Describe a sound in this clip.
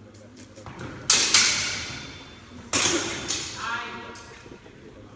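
Steel swords clash and clatter.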